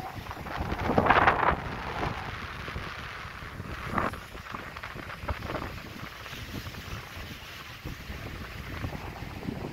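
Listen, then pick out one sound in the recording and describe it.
Wind gusts across an open beach.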